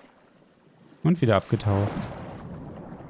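A creature splashes as it dives into water.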